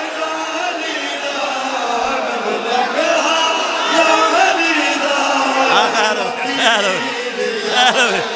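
Several men sing together loudly through microphones and loudspeakers.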